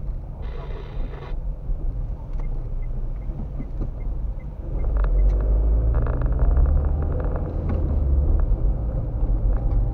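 A car engine hums steadily from inside the car as it drives along a street.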